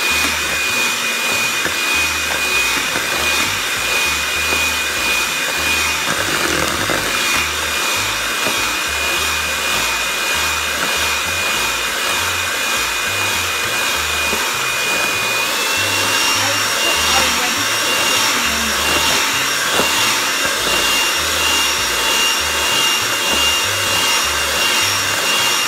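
The beaters of an electric hand mixer knock against the side of a bowl.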